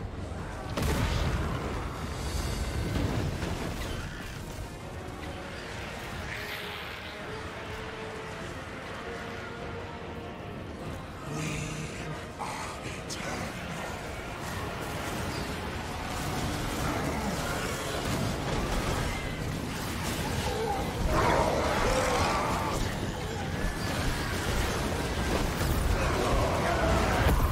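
Battle sounds of clashing weapons and magic blasts roar.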